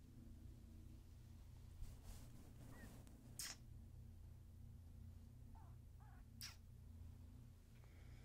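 A young woman makes soft mouth sounds close to the microphone.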